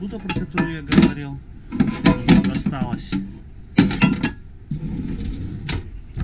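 Metal pots clink and rattle inside a drawer.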